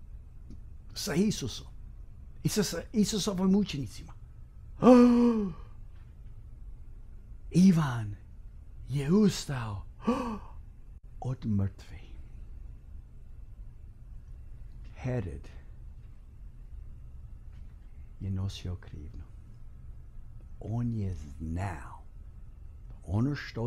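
A middle-aged man speaks with animation into a close microphone, pausing often.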